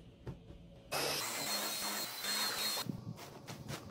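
A cordless stick vacuum runs over a sofa cushion.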